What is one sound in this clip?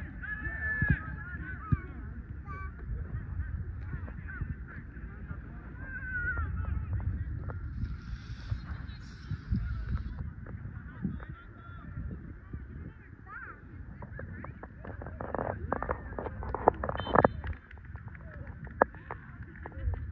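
Young women and girls call out to each other across an open field.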